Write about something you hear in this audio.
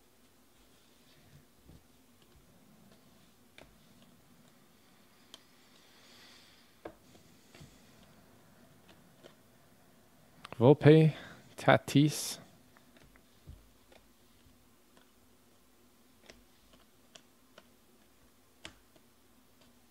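Trading cards slide and click softly as they are shuffled by hand.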